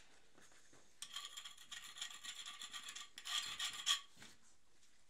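A stiff brush sweeps and scrapes over a gritty floor.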